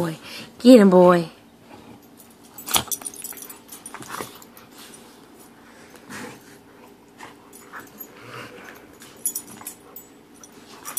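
Dogs growl and snarl playfully.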